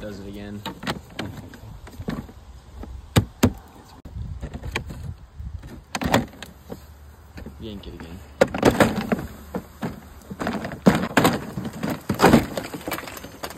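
Plastic siding panels rattle and clatter as they are pulled loose.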